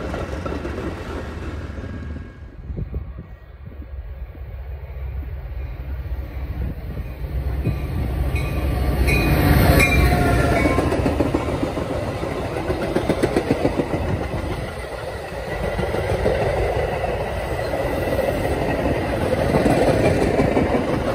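A passenger train rumbles past close by, wheels clattering over the rails.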